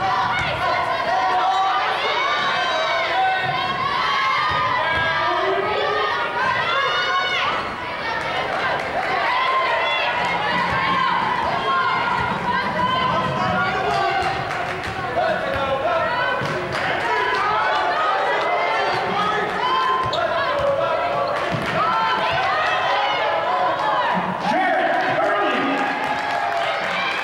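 Basketball sneakers squeak on a hardwood court in a large echoing gym.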